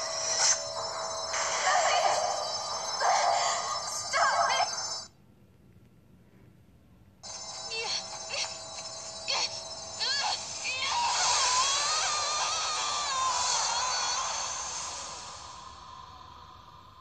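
Game sound effects and music play loudly from a small speaker.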